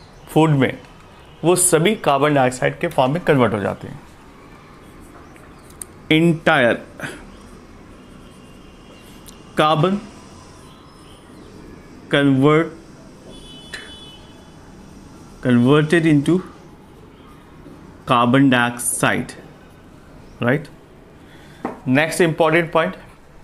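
A man speaks calmly and clearly, close by, in short bursts with pauses.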